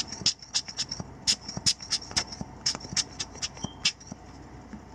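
A rubber air blower puffs air in short bursts.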